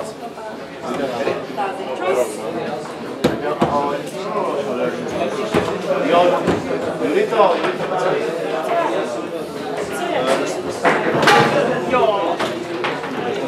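Foosball rods clatter as they spin.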